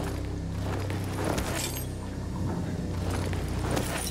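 Hands rummage through clothing and belongings.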